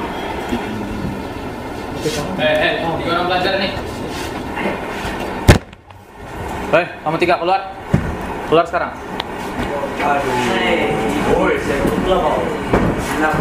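Teenage boys talk and laugh.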